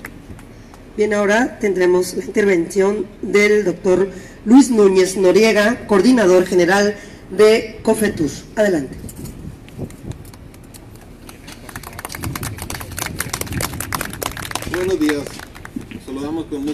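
A man speaks calmly through a loudspeaker outdoors, with an echo.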